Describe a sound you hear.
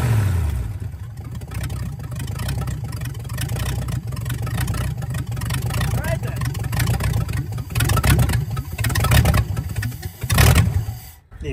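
A truck engine idles with a low, steady throbbing rumble.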